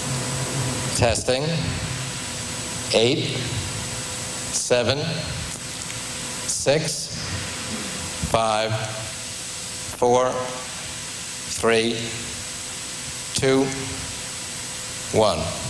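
A man speaks single words one at a time through a microphone, with pauses between them.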